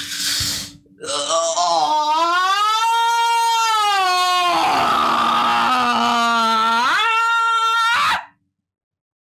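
A young woman shrieks loudly and at length.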